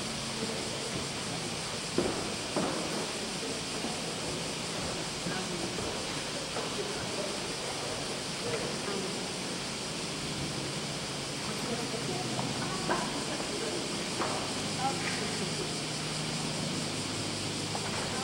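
A large congregation murmurs and shuffles in a big echoing hall.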